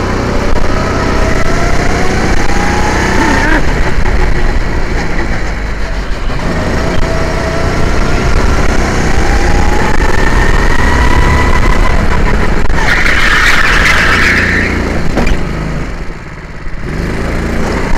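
A kart engine revs up and down, rising in pitch as it speeds up.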